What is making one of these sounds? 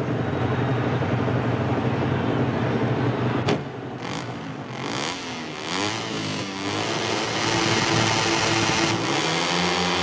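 Many motorcycle engines idle and rev together.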